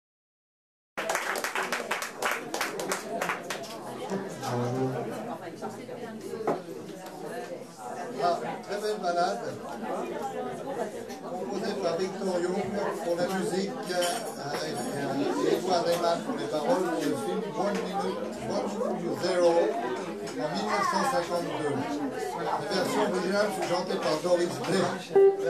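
A tenor saxophone plays a jazz melody.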